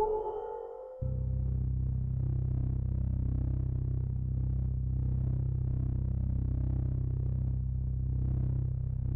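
A spaceship's engine hums low and steady.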